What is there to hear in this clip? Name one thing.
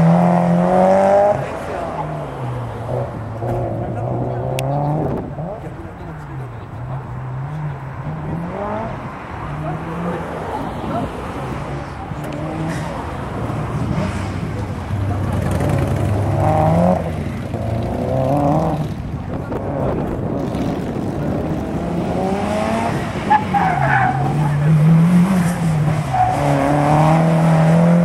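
A car engine revs hard, rising and falling as the car races around tight turns.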